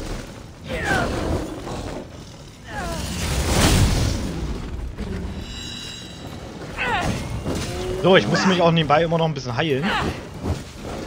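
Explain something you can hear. A blade swooshes and strikes in quick blows.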